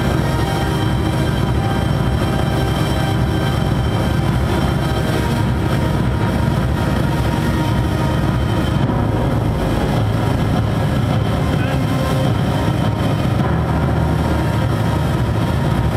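A man sings through a microphone with a distorted, loud voice.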